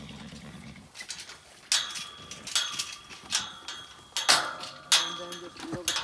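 A metal chain rattles and clanks against a gate.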